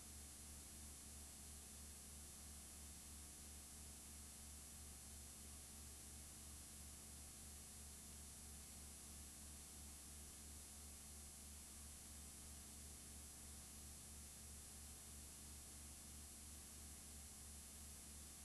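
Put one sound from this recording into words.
Television static hisses steadily.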